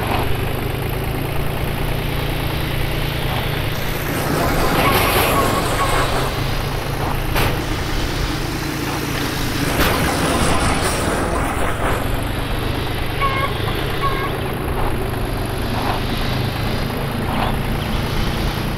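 Tractor tyres rattle over a bumpy dirt track.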